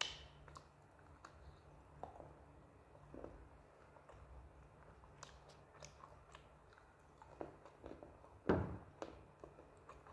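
A young woman chews and munches food close to the microphone.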